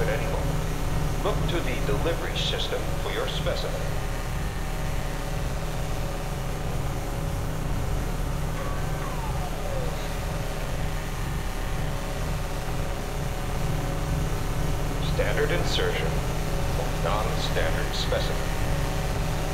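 Electric energy crackles and zaps in bursts.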